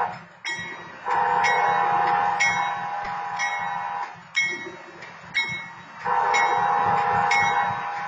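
A train rumbles past on the tracks.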